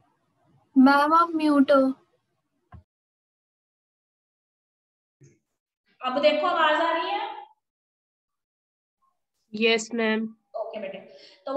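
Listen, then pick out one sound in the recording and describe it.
A woman speaks calmly in short bursts close to the microphone.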